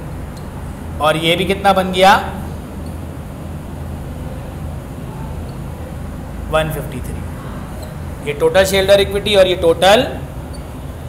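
A man speaks calmly.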